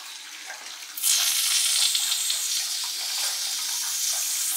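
Foam sprays from a can with a steady hiss.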